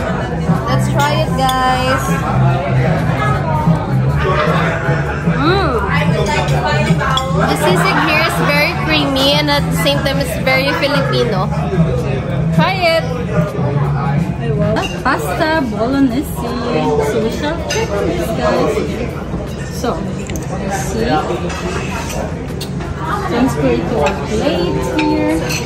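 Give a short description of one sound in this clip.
Forks clink against plates.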